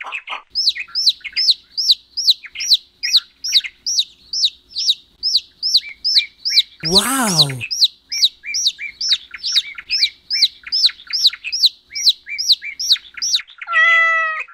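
A chick peeps rapidly and repeatedly.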